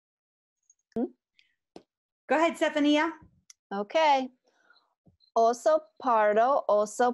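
A young woman reads aloud with expression over an online call.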